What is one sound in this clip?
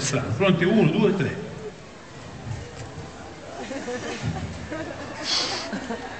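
A man speaks loudly and theatrically through a microphone.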